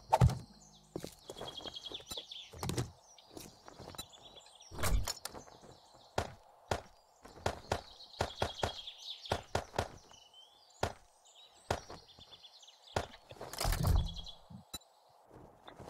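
Short clicks and clinks sound again and again as items are moved about.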